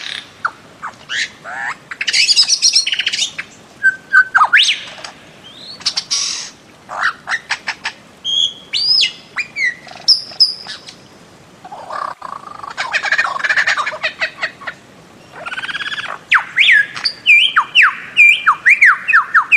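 A bird calls with loud, sharp whistles and rasping cries in bursts.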